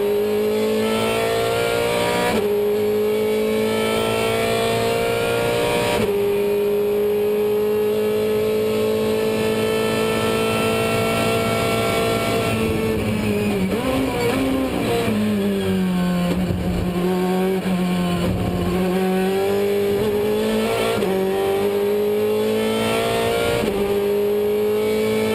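A racing car's engine roars loudly from inside the cockpit, climbing in pitch through the gears and dropping as it slows into a bend.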